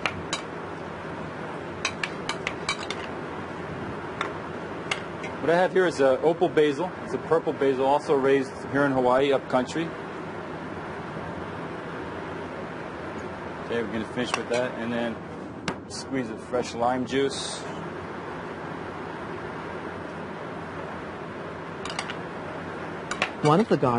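A metal spoon scrapes and clinks against a glass bowl.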